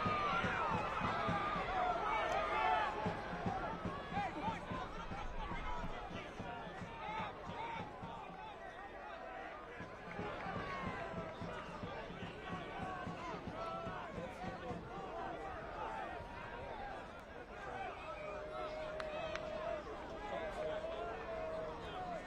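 A crowd of spectators cheers and chatters in an open stadium.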